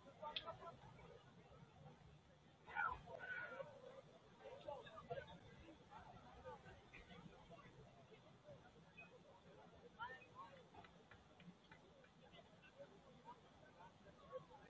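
A crowd of young people chatters and shouts outdoors at a distance.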